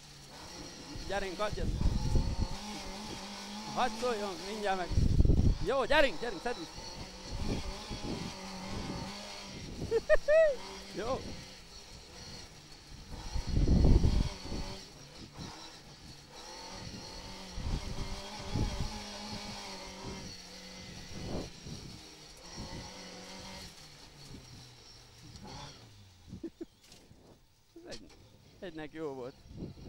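A car engine roars and revs up and down close by.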